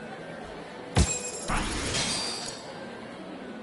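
A short bright purchase chime rings out and fades.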